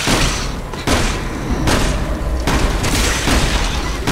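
Heavy boots thud on a hard floor in steady footsteps.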